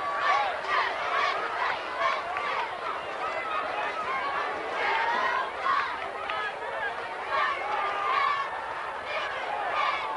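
A crowd cheers and shouts in an open-air stadium.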